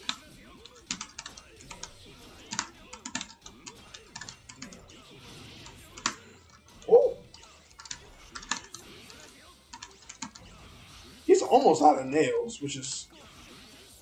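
Fighting game hits and impacts crack sharply in quick bursts.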